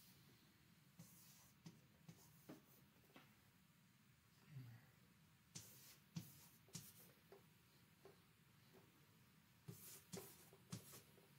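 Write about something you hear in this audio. Chalk taps and scrapes on a board in short bursts.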